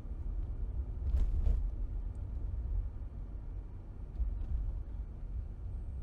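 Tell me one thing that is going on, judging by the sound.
A car engine hums low and steady as the car drives along a road.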